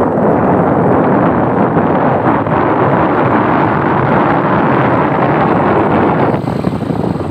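A motorbike engine drones as it approaches and passes close by.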